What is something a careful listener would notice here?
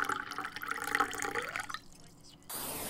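Coffee pours into a cup with a rising gurgle.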